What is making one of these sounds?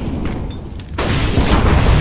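Gunfire cracks and echoes in a video game.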